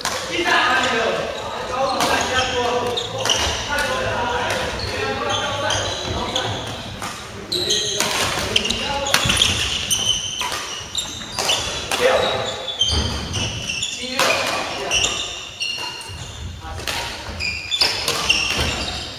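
Young men talk and call out across the hall.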